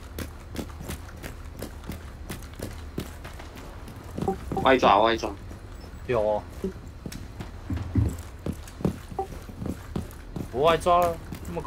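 Footsteps patter quickly and steadily on hard ground.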